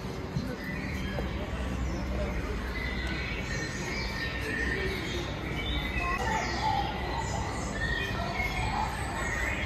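Voices of people chatter in a busy indoor space.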